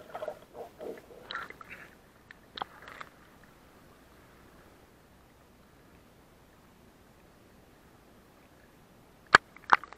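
Muffled water gurgles and bubbles underwater.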